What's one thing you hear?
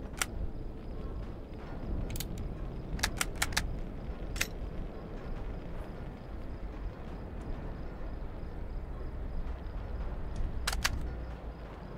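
Short, sharp menu clicks tick now and then.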